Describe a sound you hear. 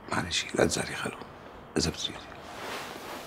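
An elderly man speaks in a low, earnest voice close by.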